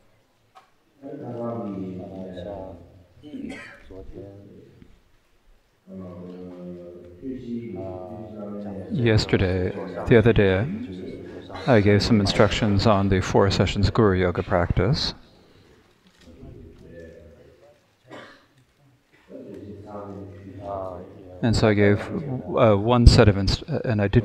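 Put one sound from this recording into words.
A young man speaks calmly and slowly into a close microphone, with pauses.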